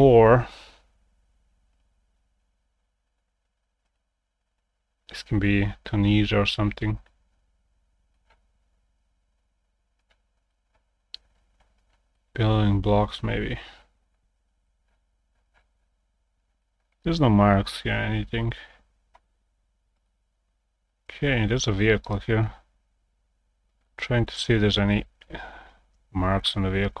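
A young man talks calmly into a close microphone, in short bursts with pauses.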